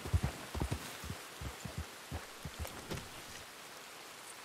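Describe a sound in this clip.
Horse hooves clop on hard ground.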